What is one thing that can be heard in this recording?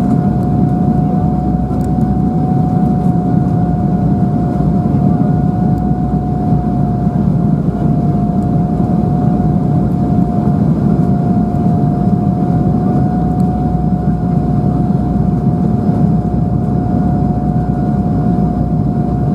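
A steady whine hums from the engines.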